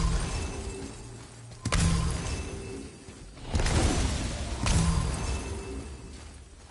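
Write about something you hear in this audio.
Heavy footsteps thud slowly on stone.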